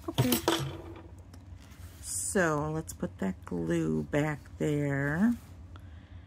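Card stock rustles and slides as it is handled.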